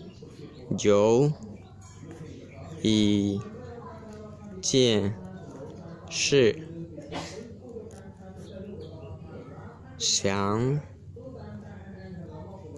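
A pen scratches on paper as it writes.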